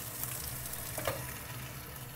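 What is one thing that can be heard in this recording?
A metal lid clinks onto a pan.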